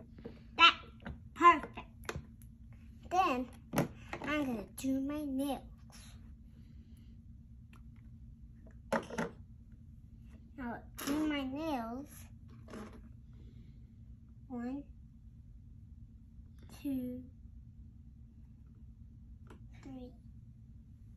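A young girl talks and sings playfully close by.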